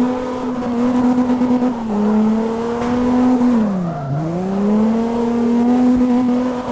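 Tyres screech as a car slides.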